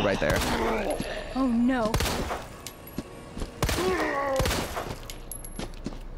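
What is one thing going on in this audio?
Gunshots ring out sharply a few times.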